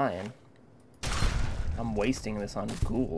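A pistol fires a few sharp shots.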